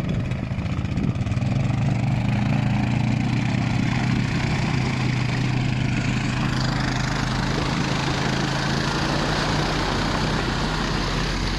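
Water splashes and churns under an all-terrain vehicle's tyres.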